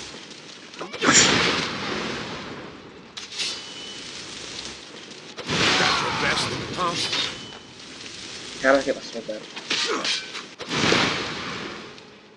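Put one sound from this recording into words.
A fiery blast booms loudly.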